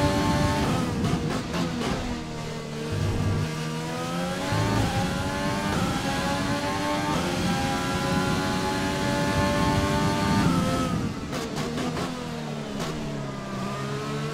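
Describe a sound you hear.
A racing car engine pops and crackles as it shifts down.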